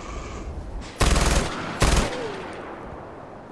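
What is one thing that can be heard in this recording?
A rifle fires two loud shots that echo away.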